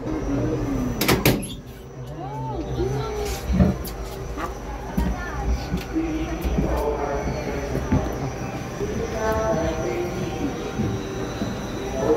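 A young man and woman talk nearby with animation.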